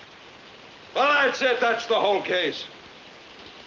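A middle-aged man shouts angrily nearby.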